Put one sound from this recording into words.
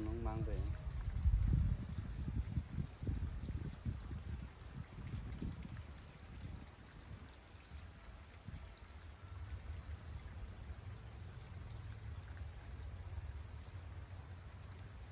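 Leafy plants rustle and snap as they are pulled by hand.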